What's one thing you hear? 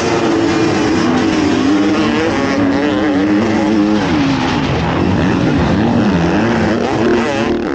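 Dirt bikes roar away and race over a dirt track.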